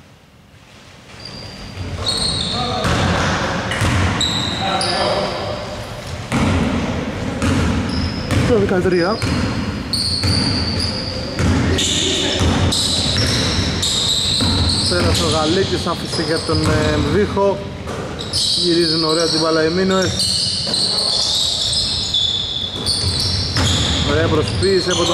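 Sneakers squeak sharply on a hardwood floor in a large echoing hall.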